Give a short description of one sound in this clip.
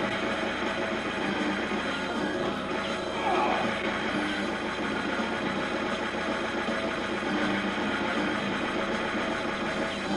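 Loud arcade game music plays with a driving beat.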